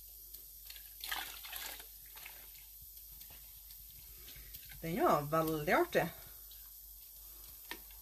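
Water sloshes softly as wet yarn is stirred in a pot.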